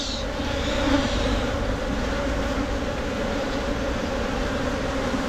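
A swarm of honeybees buzzes loudly and steadily up close.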